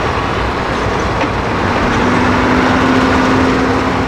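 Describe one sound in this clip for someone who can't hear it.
A loader bucket dumps manure with a thud.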